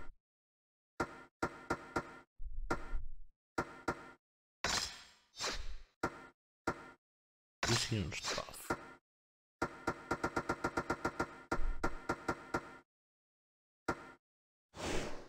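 Short menu clicks and chimes sound in quick succession.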